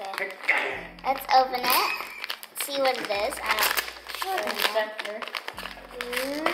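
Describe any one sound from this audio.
Paper rustles and crinkles in a girl's hands.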